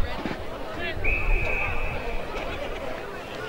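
An umpire's whistle blows one long, steady blast.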